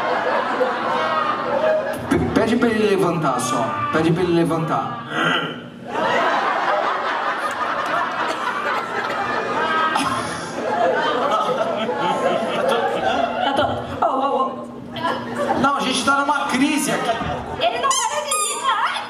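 An audience laughs and murmurs.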